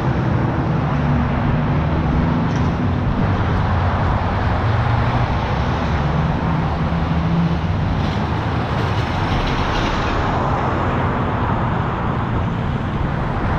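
Cars drive past close by, with engines humming and tyres rolling on the road.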